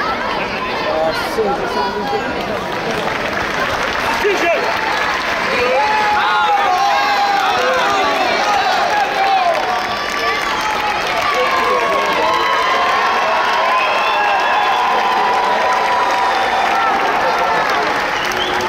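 A large crowd chatters and shouts in a big echoing hall.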